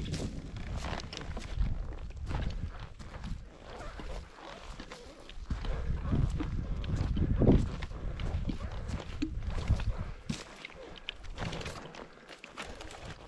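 Footsteps crunch through dry brush and snap twigs close by.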